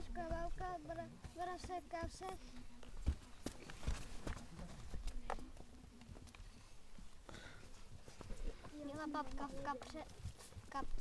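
A young boy speaks up close in a high, lively voice.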